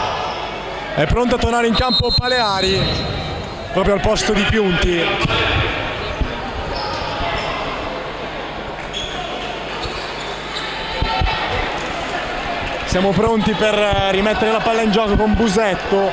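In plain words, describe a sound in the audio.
A crowd chants and cheers loudly in a large echoing hall.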